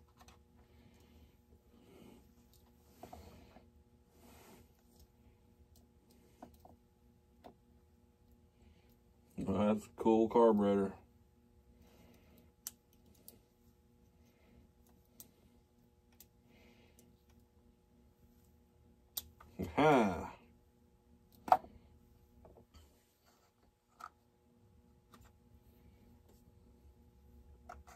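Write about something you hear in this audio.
Small metal parts click and rattle as they are handled.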